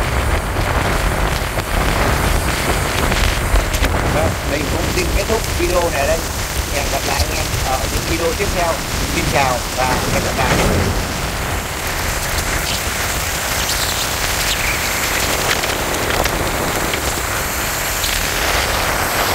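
Tyres hiss steadily on a wet road.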